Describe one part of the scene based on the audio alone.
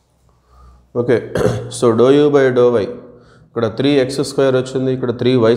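A man speaks in a lecturing manner, close to a microphone.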